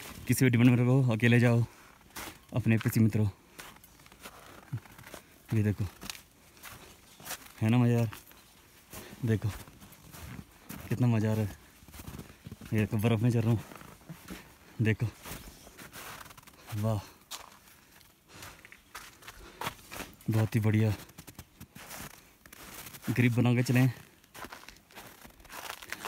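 Footsteps crunch on snow and rock.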